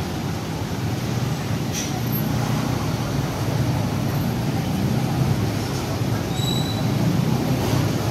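A bus engine idles close by with a low, steady rumble.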